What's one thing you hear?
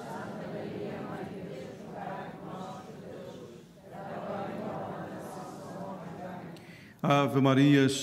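A man speaks steadily through a microphone in a large echoing hall.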